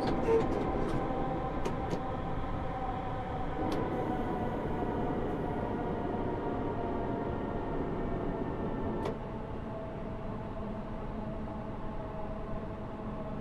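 A train's electric motor hums steadily as the train rolls along the rails.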